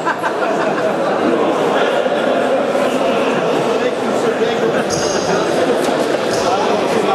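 Young men talk over one another.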